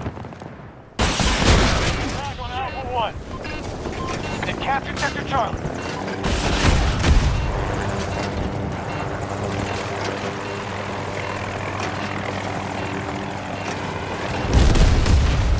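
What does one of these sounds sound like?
A helicopter's rotor thuds steadily close by.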